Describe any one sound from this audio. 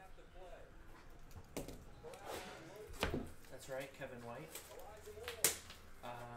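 Trading cards rustle and tap as they are handled.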